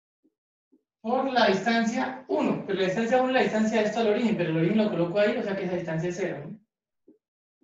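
A young man explains calmly and clearly, close by.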